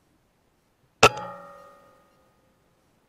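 A rifle fires a single loud shot close by, with a short metallic ring after it.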